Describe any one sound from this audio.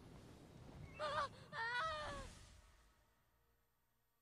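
A magical portal swirls with a shimmering whoosh that fades away.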